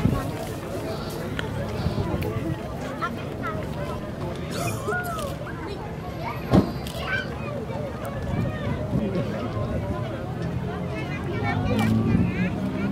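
A crowd of adults and children chatters outdoors.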